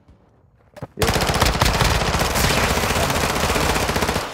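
Automatic gunfire rattles rapidly and loudly.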